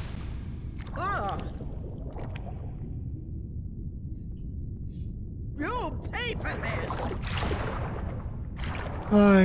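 A woman shouts angrily in a deep, theatrical voice.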